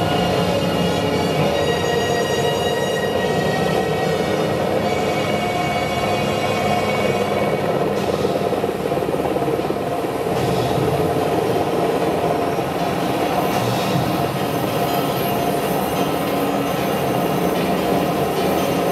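Music plays loudly through outdoor loudspeakers.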